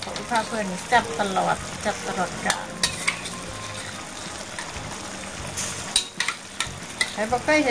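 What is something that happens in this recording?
Food sizzles softly in a pot.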